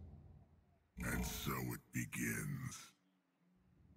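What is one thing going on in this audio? A short game fanfare plays.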